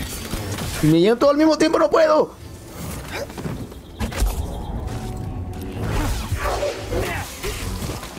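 A lightsaber clashes with sparks crackling.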